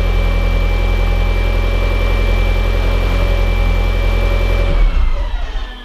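A turbocharged four-cylinder car engine idles, then shuts off.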